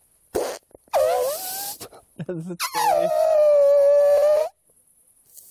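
A man blows a loud, wavering horn-like call through his cupped hands.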